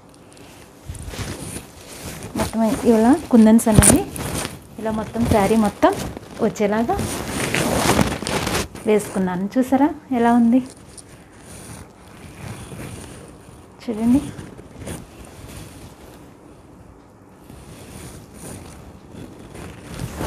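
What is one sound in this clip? Silk fabric rustles as it is unfolded and handled.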